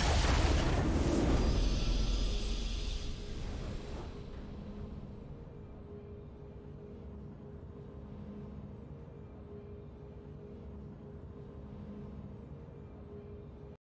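A triumphant victory fanfare plays and softly hums on.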